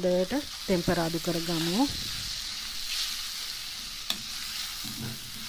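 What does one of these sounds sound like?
Meat sizzles steadily in a hot frying pan.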